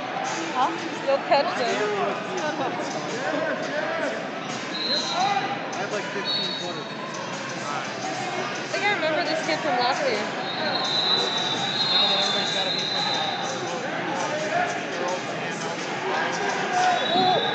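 A crowd of spectators chatters and calls out in a large echoing hall.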